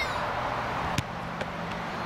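A football is kicked hard with a dull thud.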